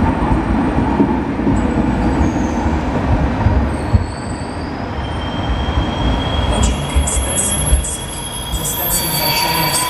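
A train rumbles away along the track and fades into the distance.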